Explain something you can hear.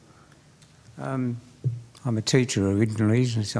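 A man speaks loudly in a large room.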